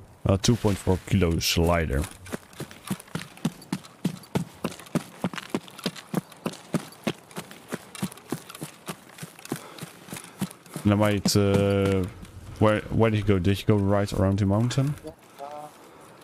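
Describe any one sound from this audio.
Footsteps crunch quickly over dirt and grass.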